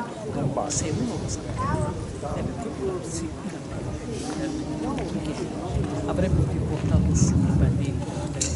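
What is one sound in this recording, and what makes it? A woman talks into a microphone through loudspeakers.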